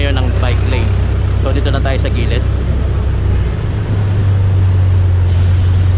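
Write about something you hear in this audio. Car traffic rumbles past on a busy road.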